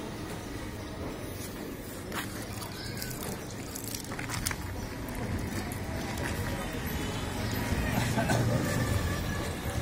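A knife slices through raw meat.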